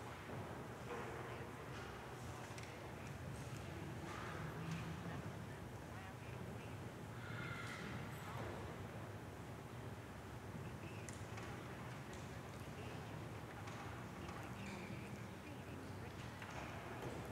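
A man speaks slowly and steadily in a large echoing hall.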